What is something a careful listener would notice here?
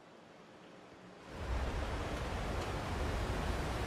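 Footsteps climb a stairway.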